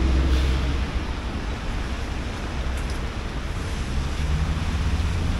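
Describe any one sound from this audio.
Tyres hiss on wet pavement.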